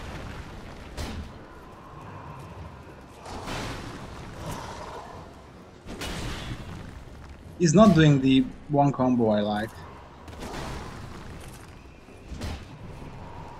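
Metal weapons swing and clang in a fight.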